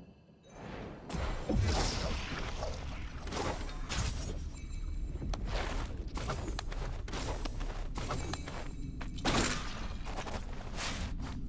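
Sword slashes and magic blasts crash in quick succession.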